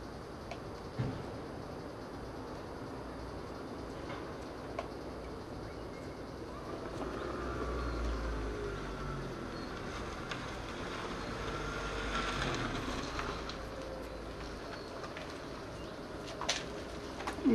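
Plastic trim clicks and scrapes under a tool.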